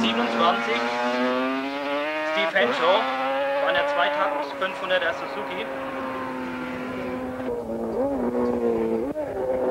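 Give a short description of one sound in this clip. A racing motorcycle engine screams at high revs, its pitch falling and rising as the rider shifts gears.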